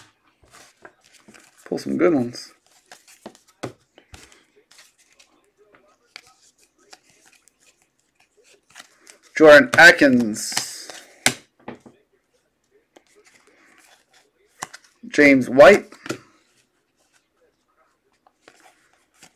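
Trading cards rustle and click as they are shuffled by hand.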